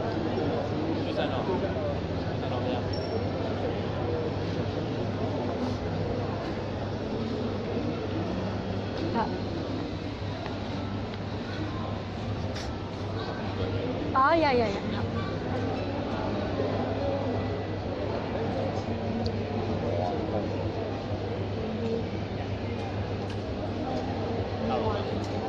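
A busy indoor crowd murmurs in a large echoing hall.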